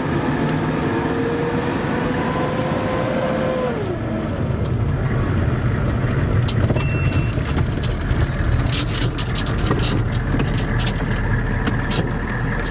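A vehicle engine rumbles steadily while driving along a rough road.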